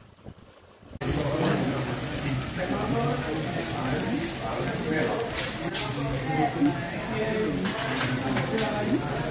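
Food sizzles on a hot grill plate.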